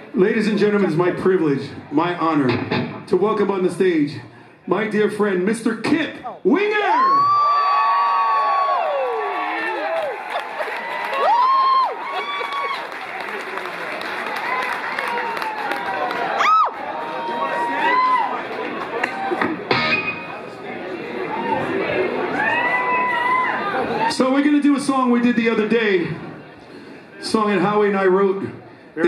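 A rock band plays loudly in an echoing hall.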